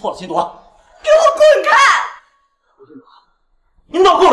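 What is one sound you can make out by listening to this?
A young woman shouts angrily, close by.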